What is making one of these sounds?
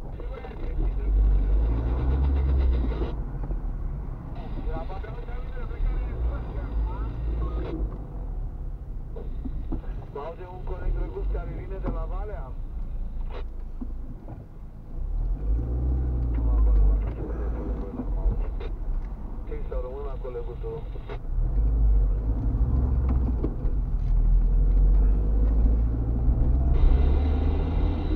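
A car engine hums steadily with tyres rumbling on the road, heard from inside the car.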